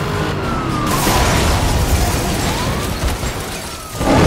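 A car crashes with a loud metallic crunch.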